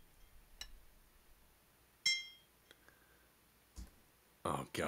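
A hammer knocks sharply on brick a few times.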